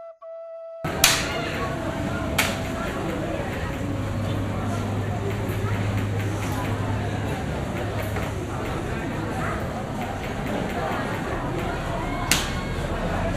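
A performer's feet stomp sharply on a mat.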